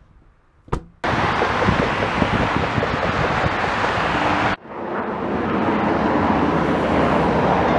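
Jet engines roar loudly.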